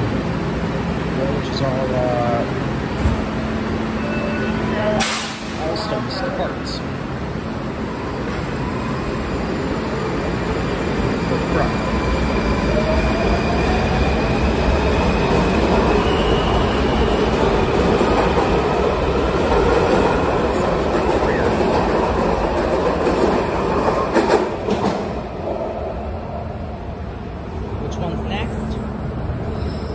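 A subway train rumbles and squeals along the platform, echoing in a large hall.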